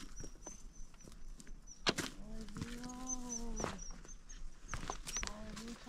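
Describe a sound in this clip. Footsteps scrape and crunch on rock.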